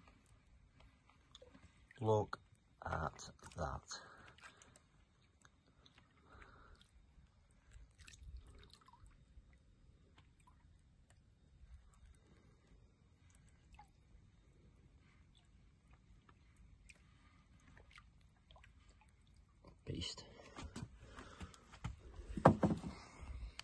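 A large fish thrashes and splashes in shallow water.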